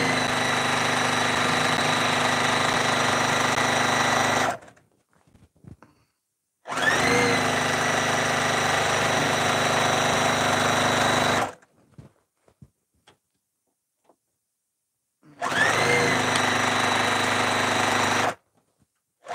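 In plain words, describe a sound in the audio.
A straight-stitch sewing machine runs in bursts, stitching through quilt fabric.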